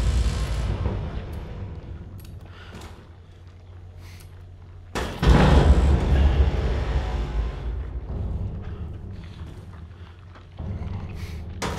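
A young man gasps in fright close to a microphone.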